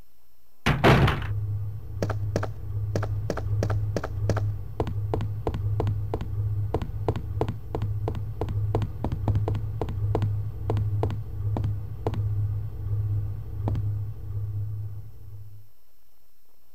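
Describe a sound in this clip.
Footsteps hurry across a hard floor.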